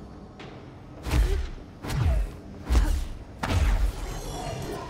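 Heavy thuds and booms hit now and then.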